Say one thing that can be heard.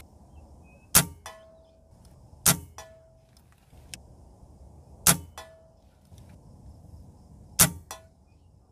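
Gunshots crack outdoors at a steady pace.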